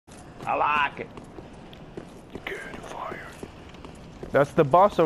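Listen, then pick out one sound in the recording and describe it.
Armoured footsteps thud on stone as a figure runs.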